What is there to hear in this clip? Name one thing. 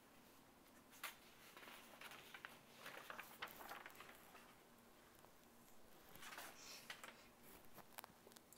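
Sheets of paper rustle and slide across a table.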